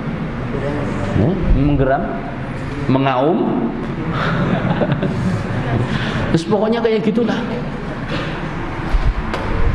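A man speaks with animation into a microphone, heard over a loudspeaker in an echoing room.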